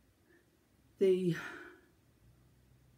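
A middle-aged woman speaks briefly and calmly, close to a microphone.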